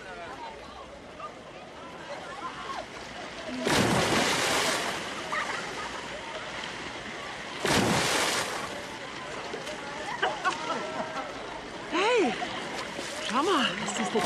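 Water laps and splashes around swimmers.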